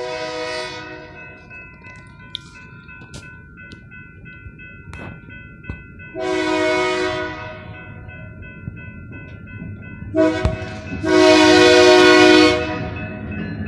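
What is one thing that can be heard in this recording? A train horn blares in long, loud blasts.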